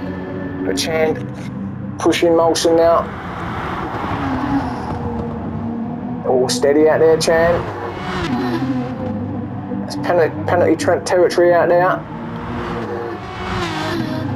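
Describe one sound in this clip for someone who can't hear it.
Racing car engines roar and rise and fall in pitch as the cars speed along a track.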